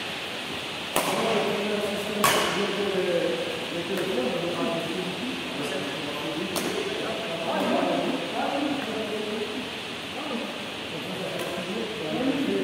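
A man talks loudly across an echoing hall.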